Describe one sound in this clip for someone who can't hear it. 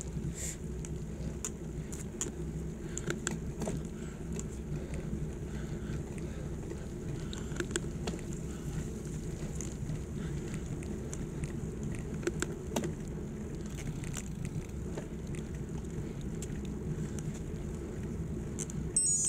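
Bicycle tyres hum on smooth road.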